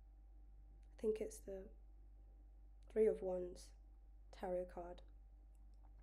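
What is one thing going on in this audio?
A young woman speaks in short bursts through an earphone microphone.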